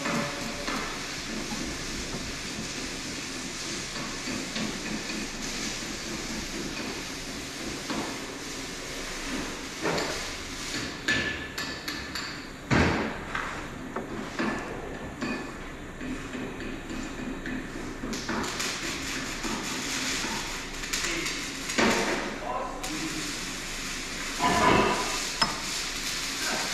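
Metal tools clink and scrape against metal close by.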